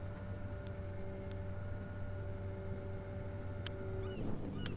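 Short menu clicks sound a few times.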